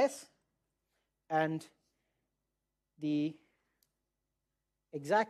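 A man lectures in short phrases with pauses.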